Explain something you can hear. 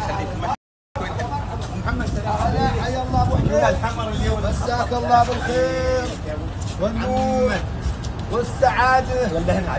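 An older man speaks loudly and with animation, close by.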